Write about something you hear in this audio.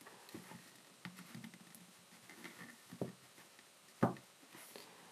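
Rubber eyecups squeak and click softly as they are twisted.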